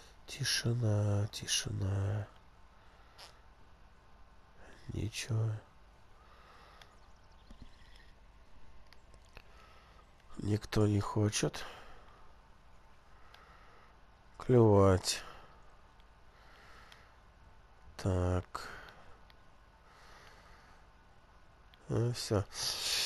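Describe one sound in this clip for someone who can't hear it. A fishing reel whirs softly as line is wound in.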